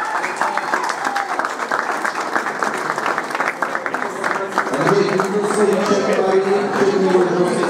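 A large crowd of men and women chatters loudly in an echoing hall.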